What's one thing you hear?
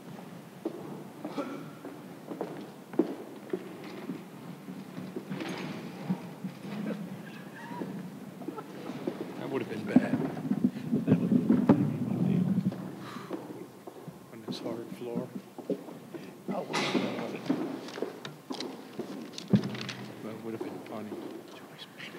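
A crowd of people murmur and chatter in a large echoing hall.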